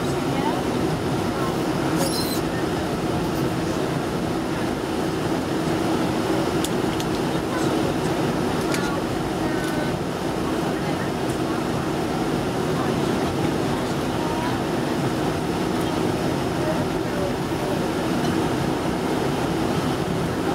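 Aircraft wheels rumble over the ground.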